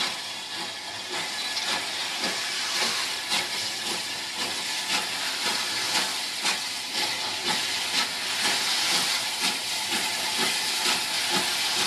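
A steam locomotive chuffs steadily in rhythmic bursts as it approaches.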